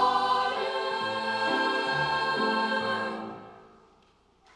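A choir of young women sings a sustained chord in an echoing hall.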